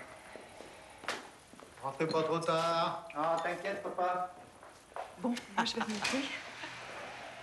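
A woman talks and laughs nearby.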